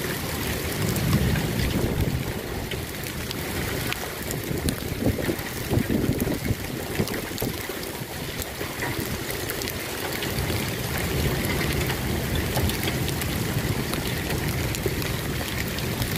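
Hailstones patter and click steadily on the ground outdoors.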